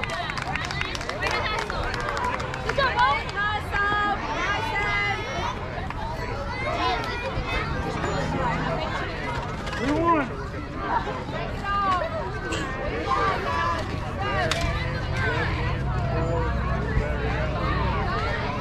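A crowd of children and adults cheers and shouts outdoors.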